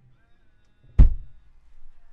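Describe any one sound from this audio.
A car boot lid thuds shut.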